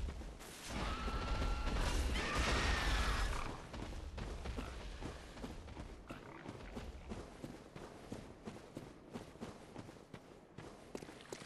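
Footsteps crunch steadily on stone and wooden boards.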